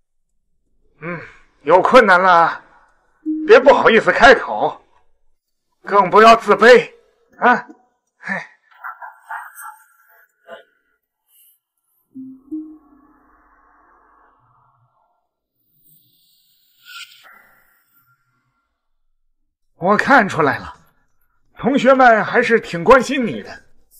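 An elderly man speaks calmly close by.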